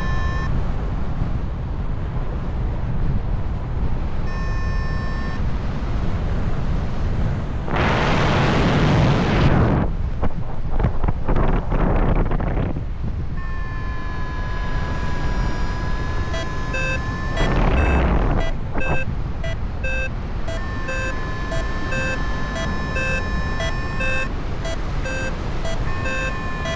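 Wind rushes and buffets loudly against the microphone, with louder gusts.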